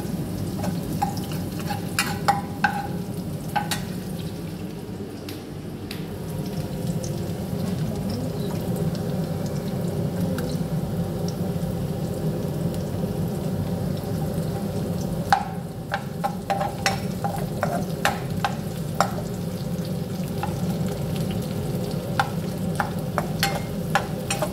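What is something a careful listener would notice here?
A metal spoon scrapes and taps against a frying pan.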